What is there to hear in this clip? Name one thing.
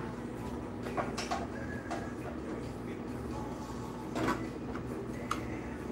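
A metal press frame clanks as it is lowered.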